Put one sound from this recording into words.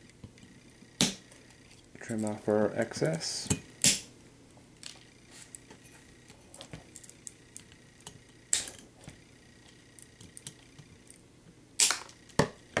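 Scissors snip through a wire.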